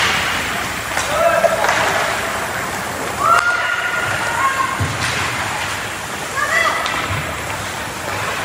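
Spectators shout from the stands.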